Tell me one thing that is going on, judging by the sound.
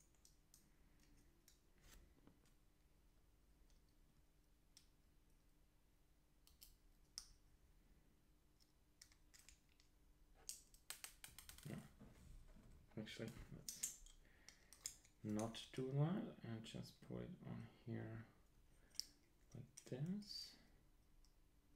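Small electronic parts click and tap softly as they are handled.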